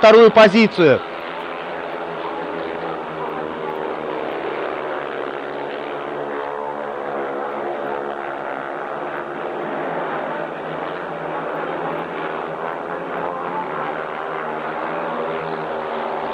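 Speedway motorcycle engines roar and whine as the bikes race around the track.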